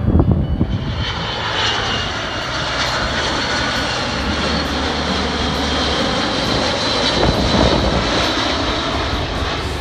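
A second jet airliner roars low overhead with a high whine.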